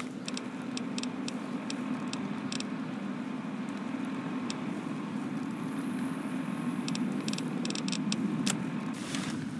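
Short menu clicks tick as items are selected.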